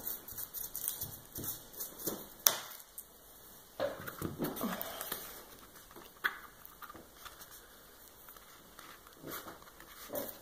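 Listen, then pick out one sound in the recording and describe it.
Fabric rustles and crinkles as hands handle it.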